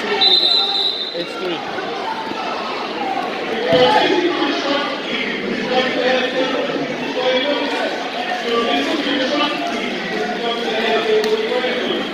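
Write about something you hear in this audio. A crowd of spectators talks and calls out in a large echoing gym.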